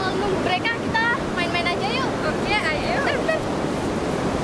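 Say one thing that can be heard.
Two young women talk and laugh close by.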